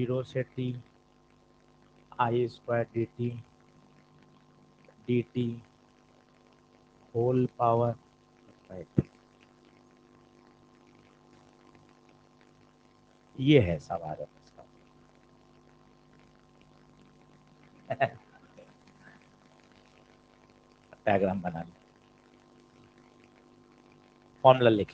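A man speaks calmly in short phrases into a close microphone.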